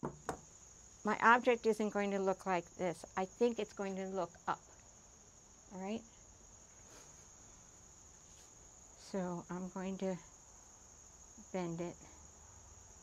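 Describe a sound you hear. An elderly woman speaks calmly and clearly into a nearby microphone.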